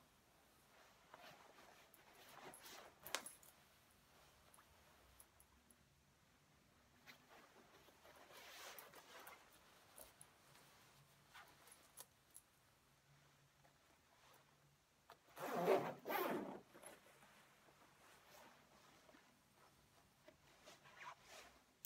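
A padded jacket rustles as a person moves in it.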